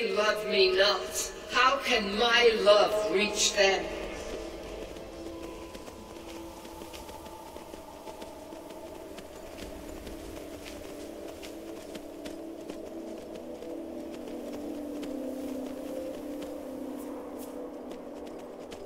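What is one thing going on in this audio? A horse's hooves thud steadily on snow and stone.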